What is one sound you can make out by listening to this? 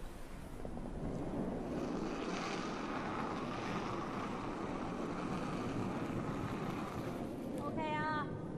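A curling stone rumbles as it slides across the ice.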